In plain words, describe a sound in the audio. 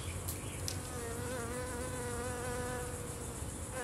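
A bee buzzes close by.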